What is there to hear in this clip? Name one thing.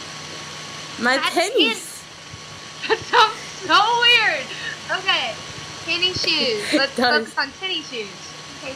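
A young woman laughs over an online call.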